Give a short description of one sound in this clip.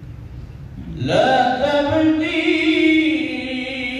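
A man recites loudly in a drawn-out chant through a microphone, in an echoing hall.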